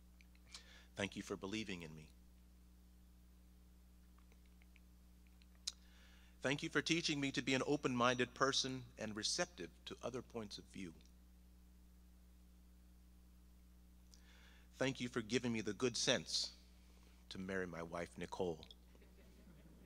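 A man speaks calmly into a microphone, with long pauses between phrases.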